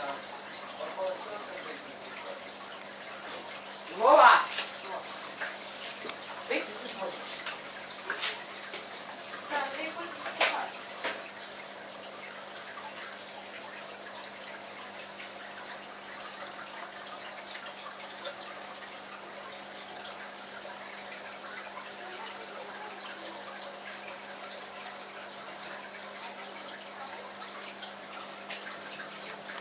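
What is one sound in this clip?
An aquarium pump hums steadily.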